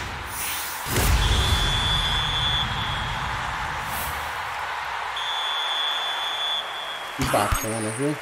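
A stadium crowd roars.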